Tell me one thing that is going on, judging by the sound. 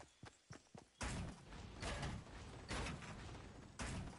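Footsteps thud quickly on wooden steps.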